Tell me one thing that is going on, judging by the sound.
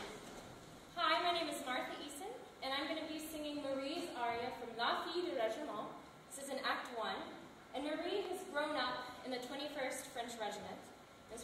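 A young woman speaks calmly to an audience.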